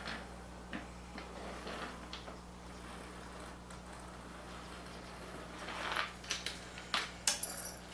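A metal chain clinks and rattles against wood.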